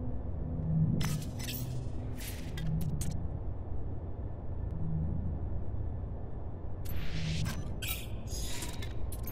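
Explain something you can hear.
Short electronic interface tones chime and whoosh.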